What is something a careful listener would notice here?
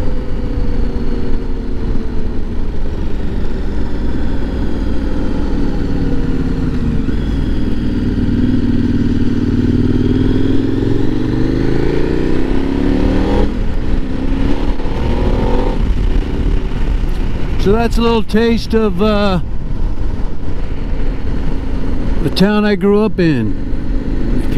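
A motorcycle engine hums steadily, its pitch rising and falling as it speeds up and slows.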